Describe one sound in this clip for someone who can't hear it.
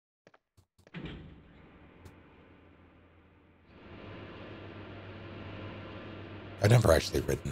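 A lift hums and rumbles as it moves.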